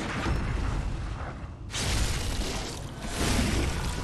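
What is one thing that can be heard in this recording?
A blade slashes and strikes a creature with a wet thud.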